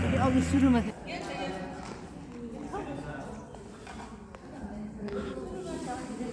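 People talk in a large echoing hall.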